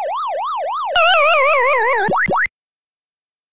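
An electronic tone sweeps downward in pitch and cuts off.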